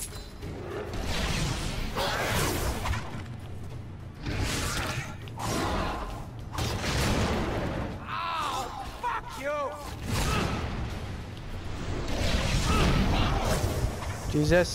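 A sword slashes through the air.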